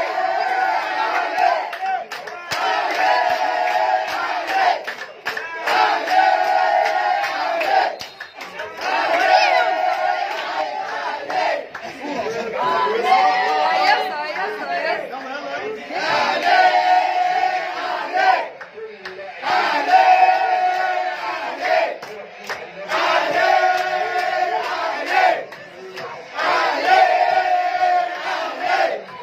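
A group of men and children sing and chant loudly together in rhythm.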